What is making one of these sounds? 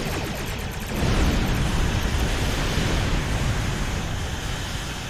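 A deep explosion booms and rumbles.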